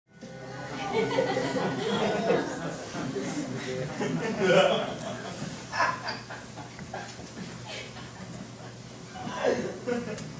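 A man speaks in a theatrical voice, in a room with light echo.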